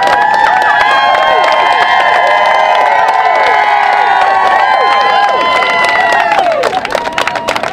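A large crowd cheers and whoops loudly outdoors.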